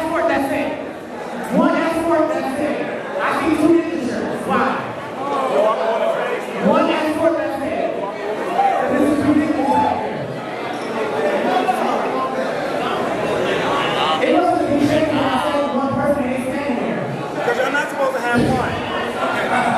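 A crowd chatters and cheers loudly all around.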